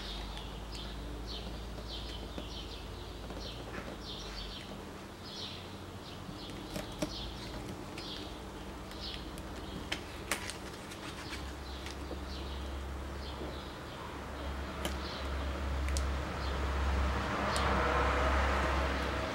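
Sticker paper crinkles and rustles under fingers.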